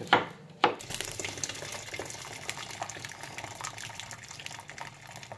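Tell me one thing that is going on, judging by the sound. Water pours from a kettle into a pot.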